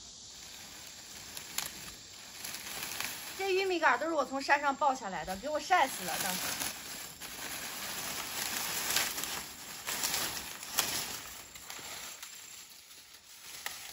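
Dry corn stalks rustle and crackle as they are handled.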